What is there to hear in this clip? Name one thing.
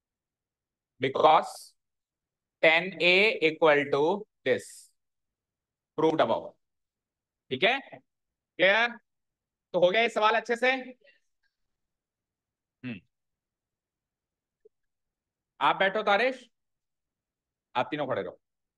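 A man explains calmly in short phrases, close to a microphone.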